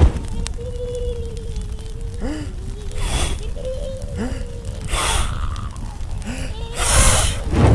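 Small flames burst up with soft whooshes.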